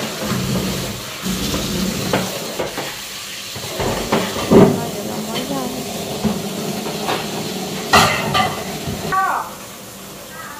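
Ceramic bowls and metal pots clatter as they are moved and stacked.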